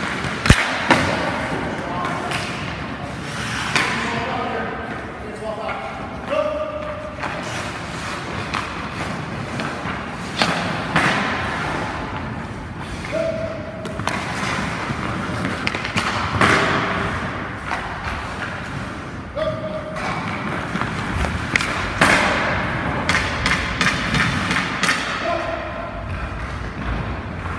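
Ice skates scrape and carve across ice.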